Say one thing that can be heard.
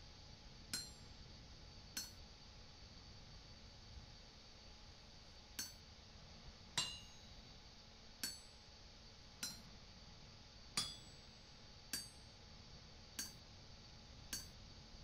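A hammer strikes hot metal on an anvil with a ringing clang.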